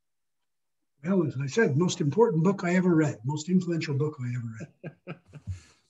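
An elderly man talks calmly over an online call.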